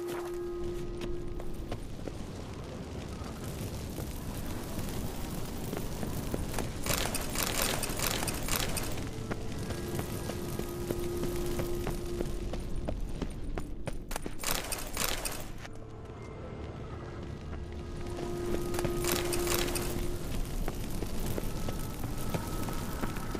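Footsteps scuff on a stone floor.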